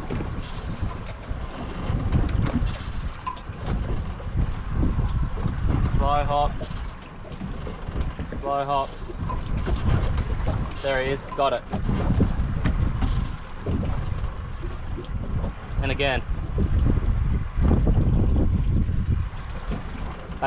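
A fishing reel whirs as it is cranked.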